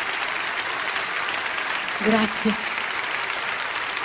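A woman vocalises through a microphone.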